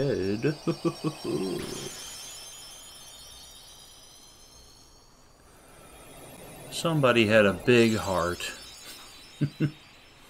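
A magical shimmering sparkle rings and swirls.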